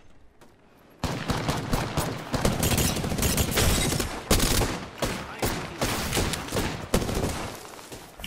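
Rapid gunfire crackles close by.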